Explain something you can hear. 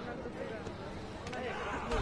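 Fires crackle.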